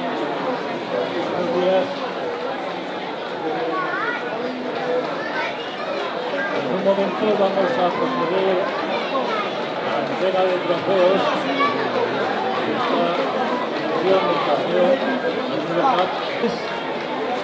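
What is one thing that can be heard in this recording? A large crowd of children chatters loudly outdoors.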